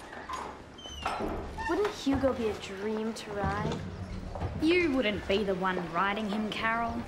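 Young girls talk with animation nearby.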